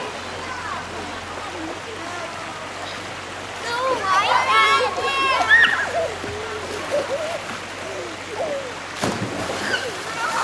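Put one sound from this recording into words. Water splashes as swimmers kick and paddle.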